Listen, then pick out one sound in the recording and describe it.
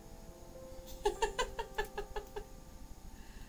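A middle-aged woman laughs near a microphone.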